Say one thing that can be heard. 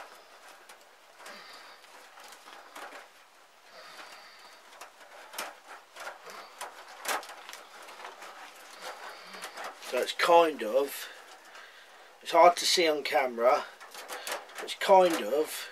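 Wire mesh rattles and clinks as it is bent by hand.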